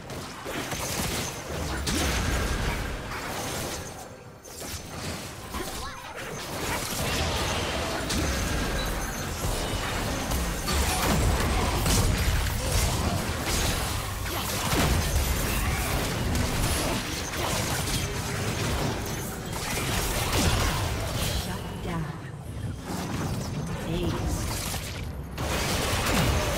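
Magic blasts whoosh and crackle during a fast fight.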